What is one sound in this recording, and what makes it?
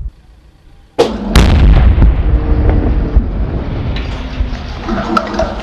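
A loud explosion booms nearby and rumbles away.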